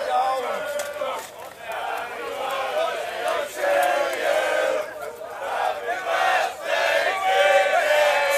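A crowd of young men and women shouts and sings loudly nearby, outdoors.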